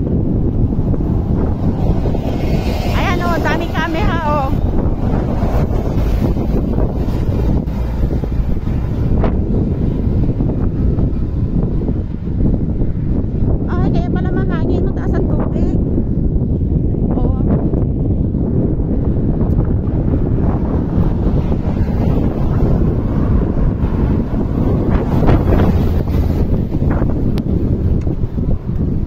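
Strong wind buffets the microphone outdoors.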